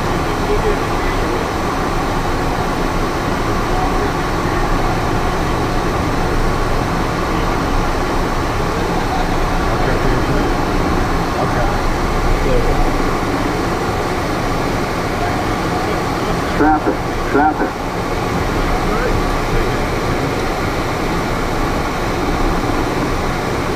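An aircraft engine drones steadily from inside a small cabin.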